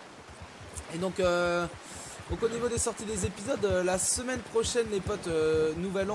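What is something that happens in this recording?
A horse splashes through a shallow stream.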